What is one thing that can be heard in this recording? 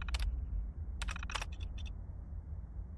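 A terminal's keys click a few times.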